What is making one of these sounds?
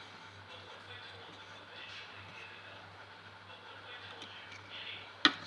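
A small metal file scrapes softly across guitar frets.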